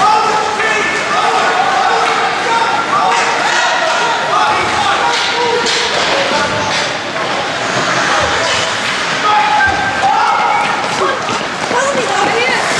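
Several people talk and chatter nearby in a large echoing rink.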